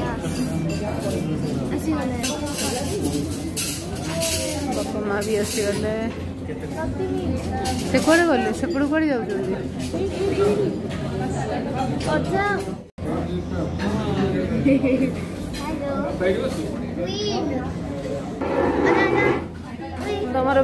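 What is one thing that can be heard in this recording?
A middle-aged woman talks close by.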